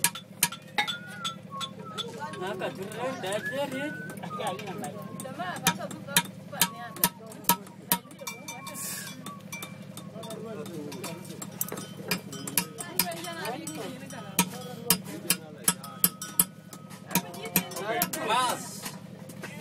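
A hammer taps rapidly on metal close by.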